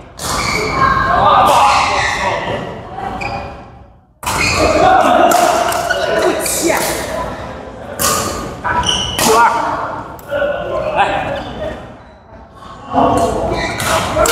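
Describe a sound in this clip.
Rackets strike a shuttlecock back and forth in a large echoing hall.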